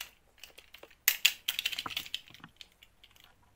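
Small plastic beads rattle and clatter.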